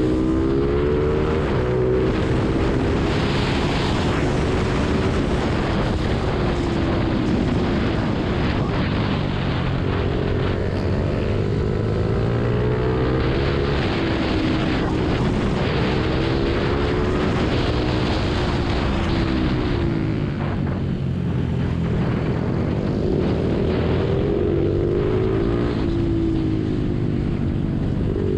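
A motorcycle engine revs loudly, rising and falling in pitch as it speeds up and slows down through corners.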